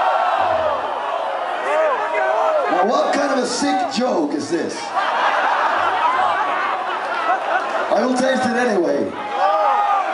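An electric bass guitar plays a low line through an amplifier.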